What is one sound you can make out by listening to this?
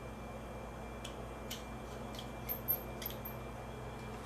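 A small screwdriver scrapes and clicks against tiny screws.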